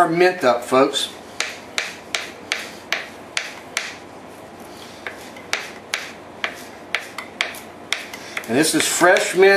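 A knife chops herbs on a cutting board with quick, regular taps.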